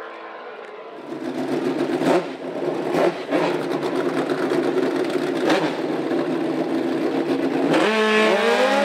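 A racing motorcycle engine idles with a rough, loud rumble.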